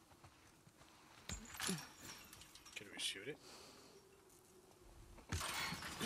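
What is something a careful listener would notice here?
A chain-link gate rattles as it is shaken.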